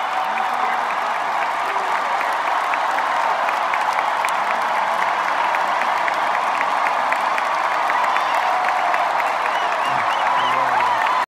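Many people whistle shrilly in a crowd.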